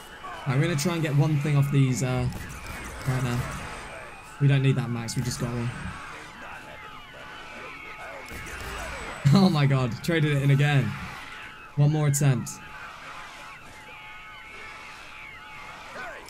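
A ray gun fires rapid sharp zapping shots.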